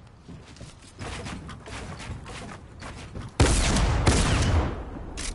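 Wooden walls clatter and thud as they are quickly built.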